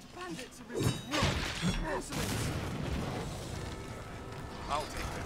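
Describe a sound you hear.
A fiery explosion bursts with a loud roar.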